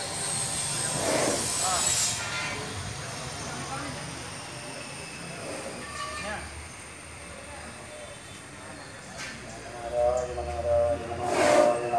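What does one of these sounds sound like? Men talk nearby in casual voices.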